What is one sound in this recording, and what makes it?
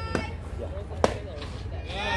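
A softball bat strikes a ball with a sharp crack.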